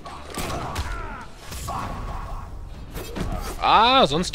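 Punches and kicks land with heavy thuds in a fighting game.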